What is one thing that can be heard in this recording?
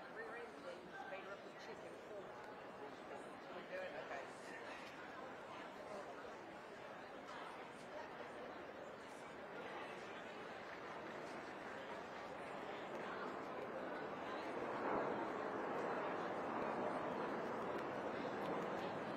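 A crowd murmurs in a large echoing hall.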